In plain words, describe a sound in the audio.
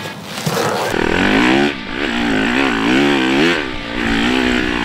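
A dirt bike engine roars and revs up and down as it rides.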